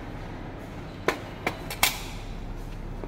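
A metal part knocks as it is set down on a hard surface.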